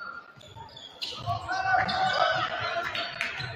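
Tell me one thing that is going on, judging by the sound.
A crowd of spectators cheers and calls out in a large echoing gym.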